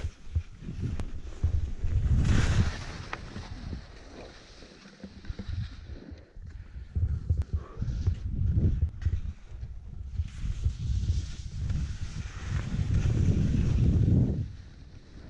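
Skis carve and scrape over snow.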